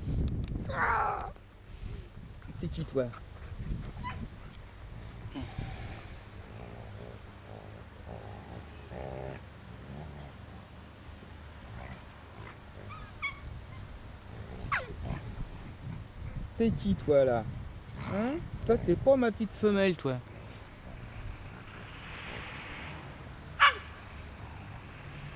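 Two dogs growl and snarl as they wrestle playfully.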